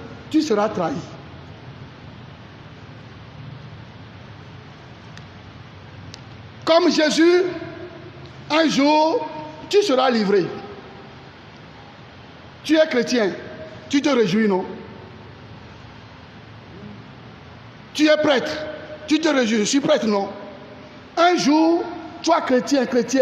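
A man preaches with animation into a microphone, in bursts with long pauses.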